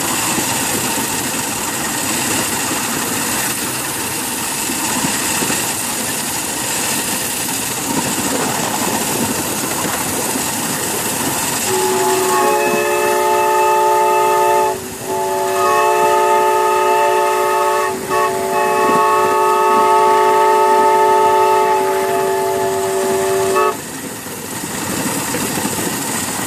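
A small steam locomotive rumbles and clatters along the track.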